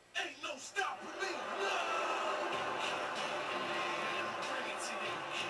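A crowd cheers through a television speaker.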